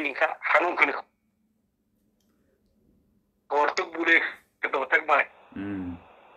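A man speaks close by in a quiet, subdued voice, with pauses.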